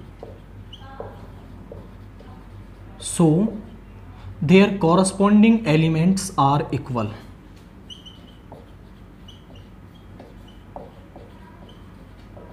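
A marker squeaks on a whiteboard in short strokes.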